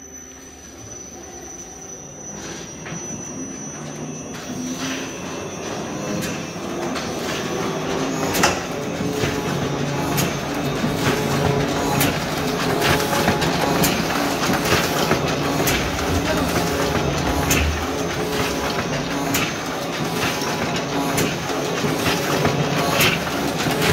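A printing press runs with a steady mechanical clatter that grows louder.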